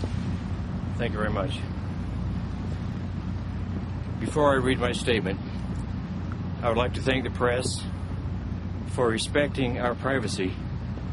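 A middle-aged man speaks firmly into a microphone outdoors, with pauses between phrases.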